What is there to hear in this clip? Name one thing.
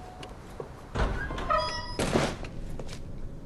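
A door swings open with a loud creak and thud.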